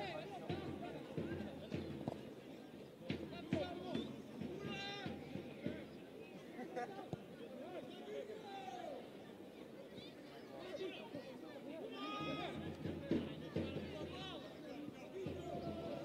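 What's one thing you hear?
A crowd of spectators chatters and calls out outdoors.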